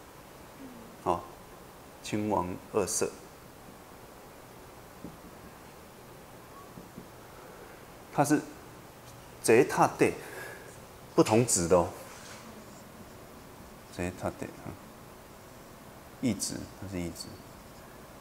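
A middle-aged man speaks calmly into a microphone in short phrases, with pauses in between.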